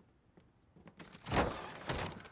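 A wooden door creaks and bangs open.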